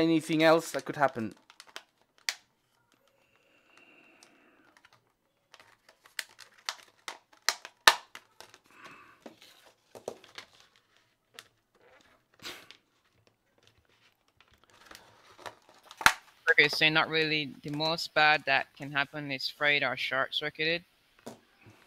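Plastic packaging crinkles and clicks as it is handled.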